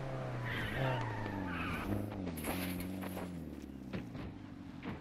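Tyres skid and crunch over rough ground.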